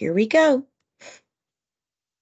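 A woman speaks a few words close to a microphone.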